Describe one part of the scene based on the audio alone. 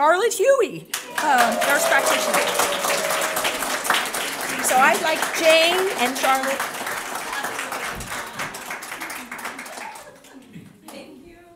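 An audience applauds warmly.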